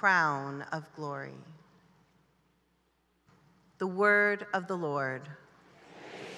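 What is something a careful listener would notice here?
A woman speaks slowly and with feeling through a microphone in a large hall.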